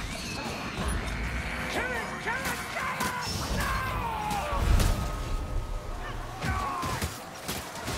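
Blades hack and clash in a close melee fight.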